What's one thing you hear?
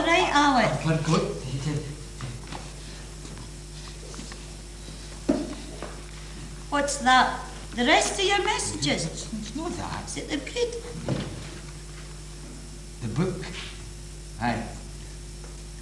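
An elderly woman speaks with feeling, close by.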